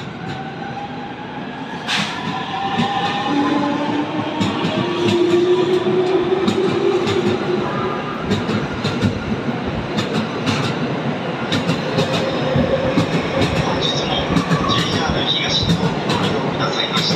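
A train rumbles past, its wheels clattering over rail joints.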